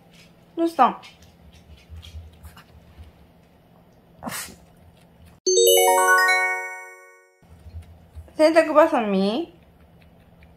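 A small dog whines and howls in short bursts.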